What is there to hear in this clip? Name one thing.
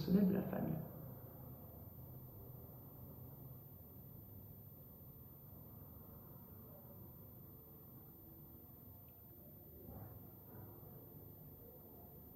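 A woman speaks softly close to a microphone.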